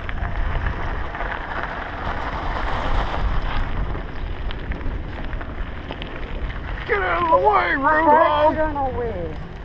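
Bicycle tyres rumble and crunch over gravel.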